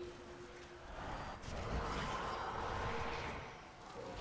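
Game spell effects whoosh and hum.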